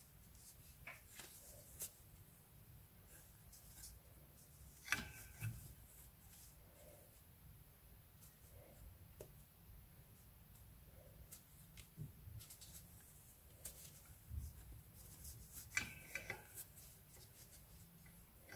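Yarn rustles softly as a crochet hook pulls loops through.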